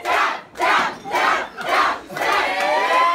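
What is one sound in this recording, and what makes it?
A group of young people clap their hands.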